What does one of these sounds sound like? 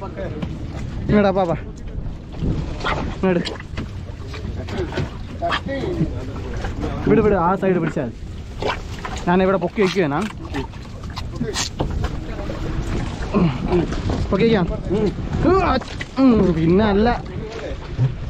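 Men talk with animation close by.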